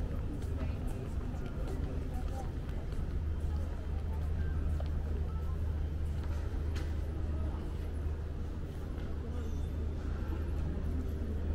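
Distant people murmur and move about in a large echoing hall.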